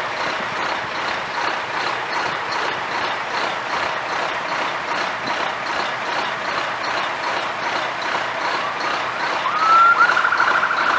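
Cars drive past one after another.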